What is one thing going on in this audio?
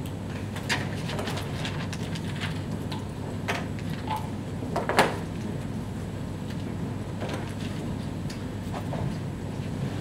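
Small objects knock and clatter on a desk.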